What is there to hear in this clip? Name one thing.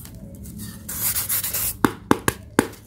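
Hands rub and scrape a block of foam.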